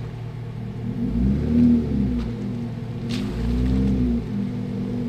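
Tyres crunch on gravel.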